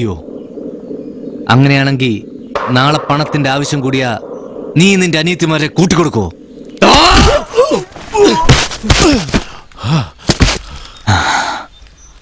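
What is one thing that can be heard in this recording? Another young man answers tensely, close by.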